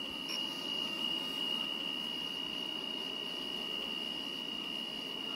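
An electric motor whines with a steady high tone.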